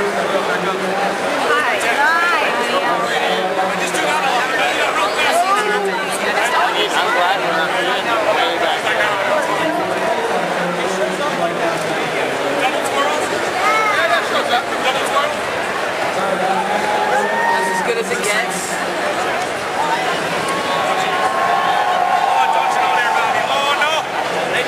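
A large crowd chatters loudly all around in a big echoing hall.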